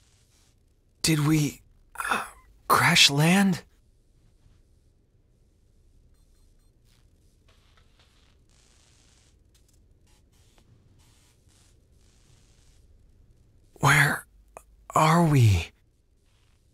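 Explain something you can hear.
A young man speaks in a worried, uncertain voice.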